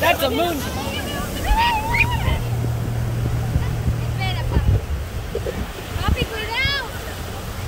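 Small waves wash softly onto a sandy shore.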